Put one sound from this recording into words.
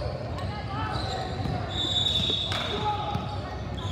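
A basketball bounces on a wooden floor with echoing thuds.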